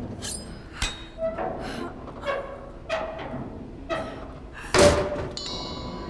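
A metal crate is pried and scrapes open.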